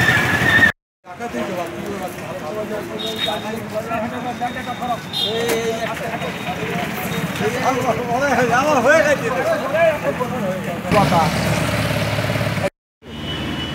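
Several men talk loudly and excitedly close by, outdoors.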